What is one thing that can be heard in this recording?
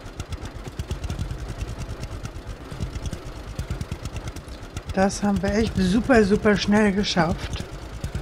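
A tractor engine chugs steadily.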